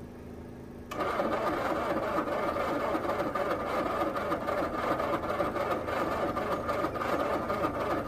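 A car engine runs with a steady rumble.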